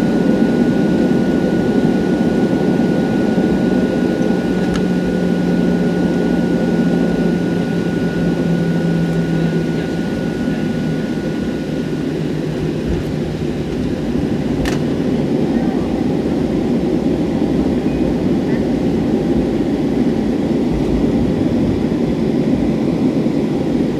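A jet aircraft roars steadily in the distant night sky.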